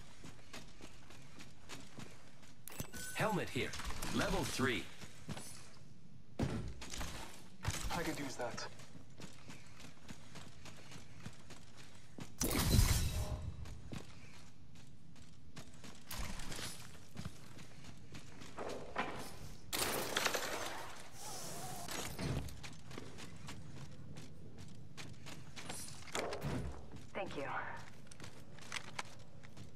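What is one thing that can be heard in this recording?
Quick footsteps run over hard floors.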